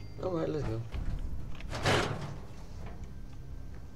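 A door opens and shuts with a thud.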